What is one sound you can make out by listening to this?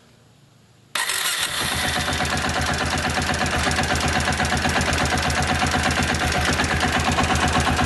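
A motorcycle engine starts up and idles with a fast, steady rumble close by.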